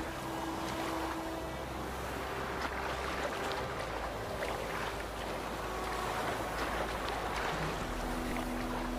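Water splashes and churns as a swimmer moves through it.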